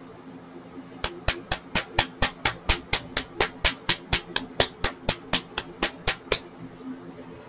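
A nail polish bottle rattles as it is shaken quickly.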